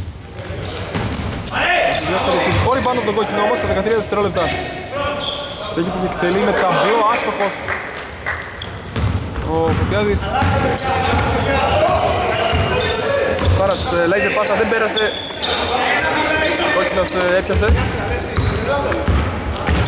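Men shout and call out across a large echoing hall.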